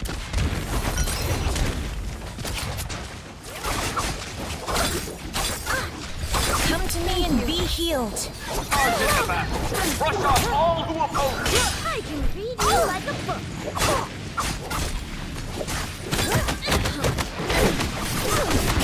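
Blades clash and strike repeatedly in a fight.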